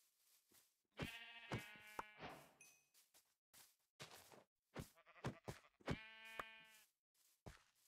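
A pig grunts and squeals.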